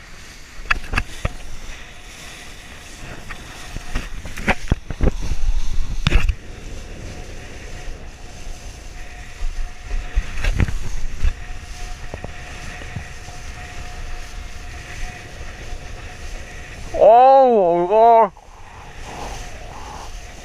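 A kiteboard skims and slaps through choppy sea water, throwing spray.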